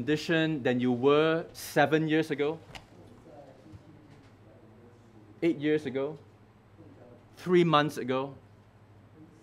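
A middle-aged man speaks slowly and calmly through a microphone, with long pauses.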